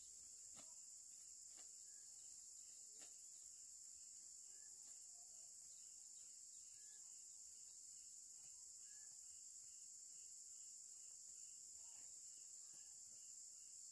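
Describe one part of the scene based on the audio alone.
Plant stems snap and leaves rustle as they are picked by hand.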